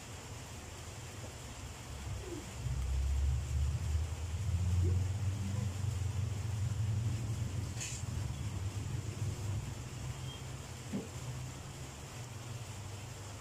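A dog laps and crunches food from a bowl.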